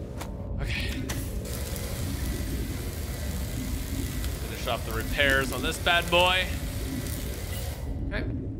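A repair tool hisses and crackles.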